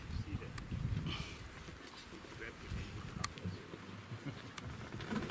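A leopard's paws rustle softly through dry grass.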